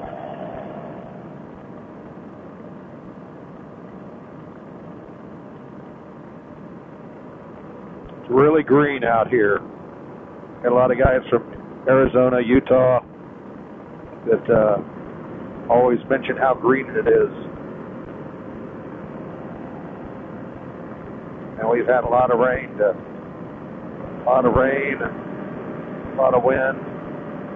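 A paramotor trike engine drones in flight.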